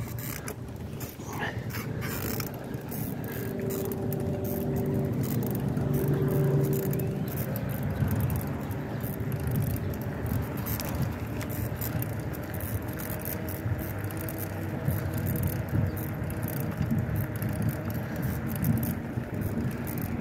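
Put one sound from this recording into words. Bicycle tyres roll steadily over smooth pavement.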